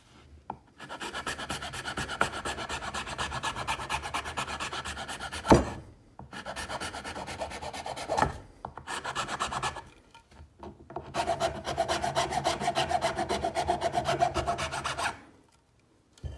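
A file rasps back and forth over a hard edge in quick, steady strokes.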